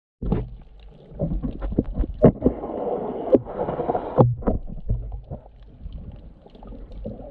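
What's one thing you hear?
Water swirls and bubbles in muffled bursts underwater.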